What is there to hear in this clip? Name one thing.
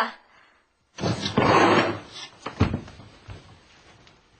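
An elderly man speaks in surprise.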